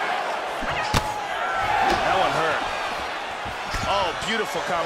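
Punches thump against a body.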